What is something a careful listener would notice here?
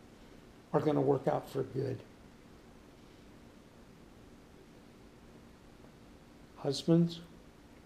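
An older man speaks calmly close by.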